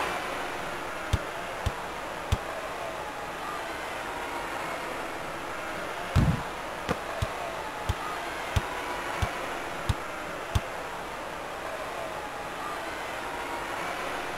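A crowd murmurs steadily in a large arena.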